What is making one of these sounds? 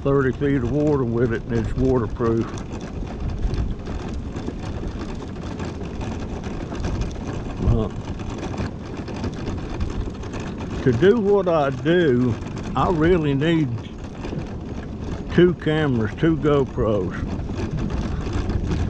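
Tyres roll over rough asphalt.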